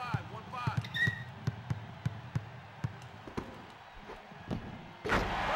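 A basketball bounces repeatedly on a wooden court.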